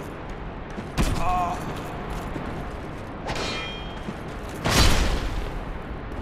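A sword strikes bone with a sharp crack.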